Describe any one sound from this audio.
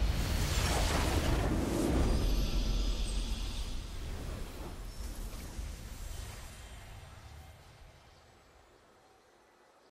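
A game's victory fanfare swells loudly and slowly fades away.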